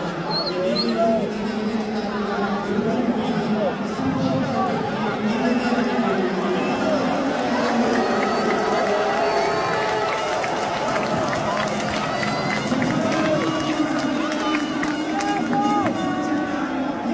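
A large crowd sings and cheers loudly in a big echoing stadium.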